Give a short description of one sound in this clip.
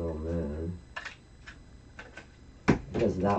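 A paper punch clicks and snaps through paper.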